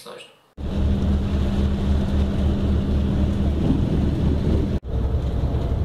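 Rain patters on a window.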